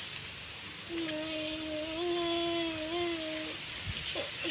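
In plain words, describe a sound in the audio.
A woman sings a short drawn-out tune nearby.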